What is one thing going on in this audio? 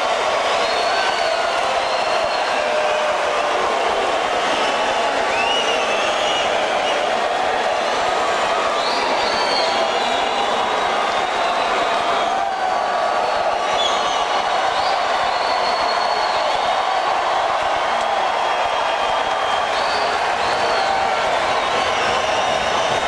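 A rock band plays live through loud speakers, heard from far back in the hall.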